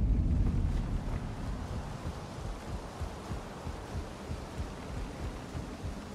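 Footsteps thud on a wooden rope bridge.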